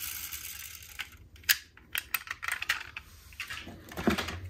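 Plastic toy cars clatter and click as a hand rummages through a box.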